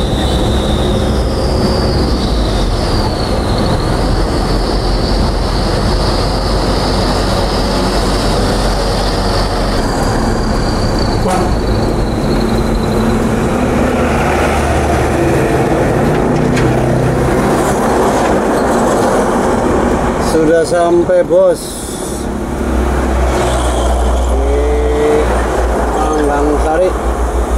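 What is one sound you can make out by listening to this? A vehicle engine rumbles steadily from inside the cab.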